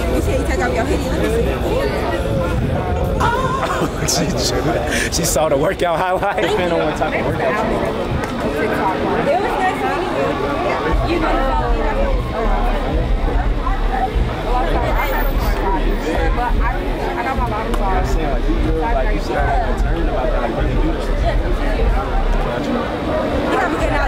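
A young man answers casually, close by.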